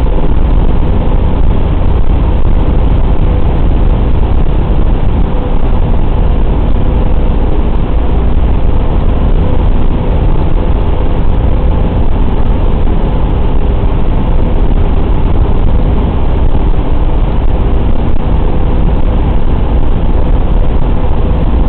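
The four radial engines of a B-24 bomber drone in flight, heard from inside the fuselage.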